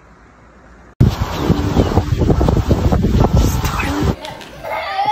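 A dog pants happily.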